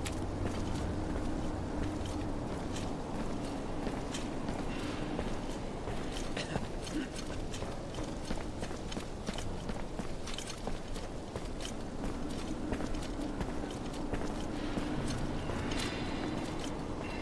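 Footsteps tread softly on a stone floor.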